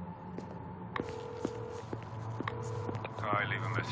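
A phone line beeps with short repeating tones.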